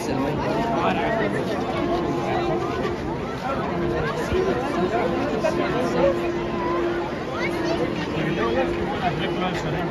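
A large outdoor crowd chatters and calls out excitedly all around.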